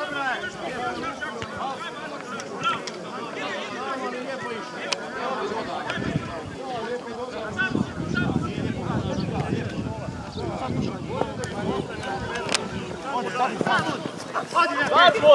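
Men shout and call to each other across an open field, outdoors.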